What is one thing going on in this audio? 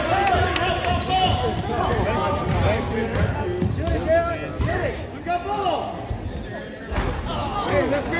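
Sneakers squeak sharply on a hard gym floor.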